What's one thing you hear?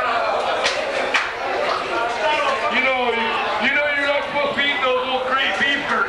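A man talks into a microphone close by.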